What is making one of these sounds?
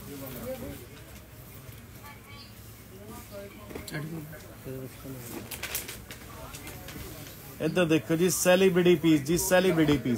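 Cloth rustles and flaps as it is unfolded.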